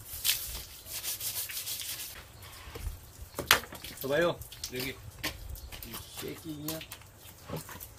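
Water from a hose splashes onto a wooden surface.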